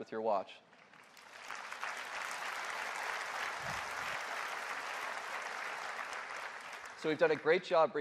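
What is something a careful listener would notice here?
A large audience applauds.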